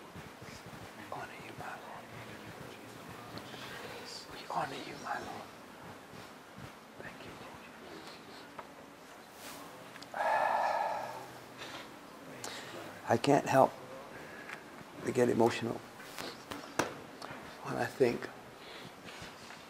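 A middle-aged man speaks quietly and haltingly, close by.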